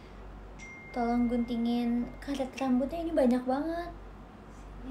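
A young woman sings a short melodic phrase close by.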